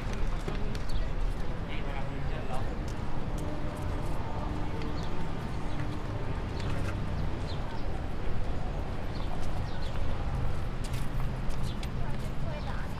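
Footsteps scuff on pavement nearby.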